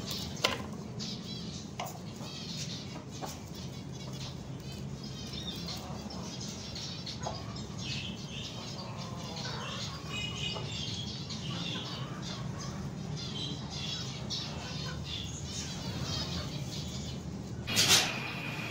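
Zebra finches chirp and call.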